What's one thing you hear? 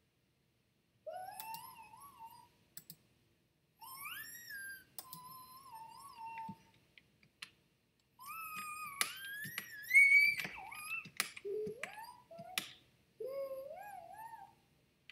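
Electronic tones glide up and down in pitch.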